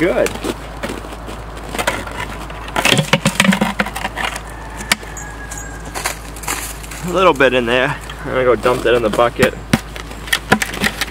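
A plastic bucket knocks and rattles as it is handled.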